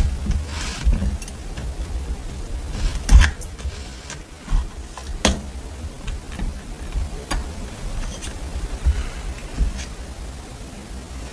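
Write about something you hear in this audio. Small wooden stamps click and clatter as fingers pick through them.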